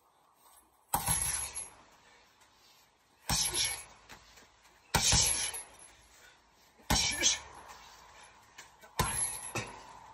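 Gloved fists thump hard against a heavy punching bag.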